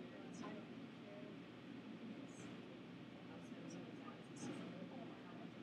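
A young woman speaks calmly, close to a microphone.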